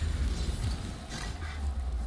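Fire roars.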